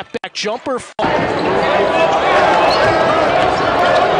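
A crowd cheers and roars in a large echoing arena.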